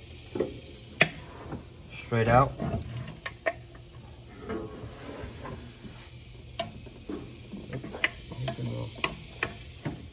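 Metal parts click and tap as they are handled.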